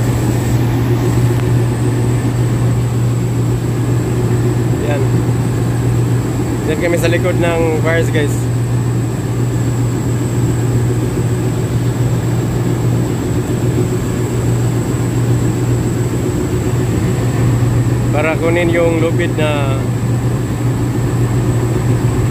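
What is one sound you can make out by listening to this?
A tugboat's diesel engine drones.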